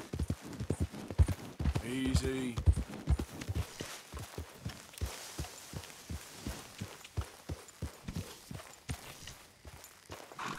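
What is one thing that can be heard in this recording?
A horse's hooves thud quickly over soft ground.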